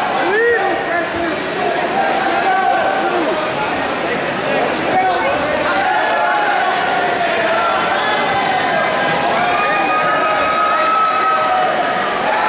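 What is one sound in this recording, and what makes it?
A crowd of spectators shouts and calls out in a large echoing hall.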